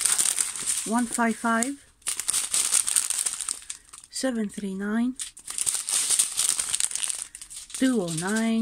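Plastic bags crinkle and rustle as they are handled close by.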